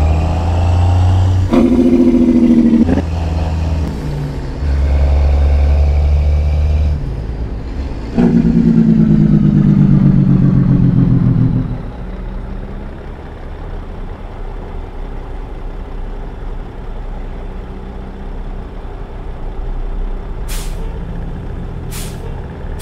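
A heavy truck engine drones.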